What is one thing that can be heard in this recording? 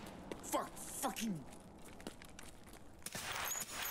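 A rifle shot rings out indoors.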